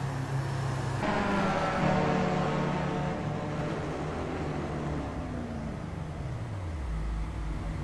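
A racing car roars past, its engine pitch dropping as it goes by.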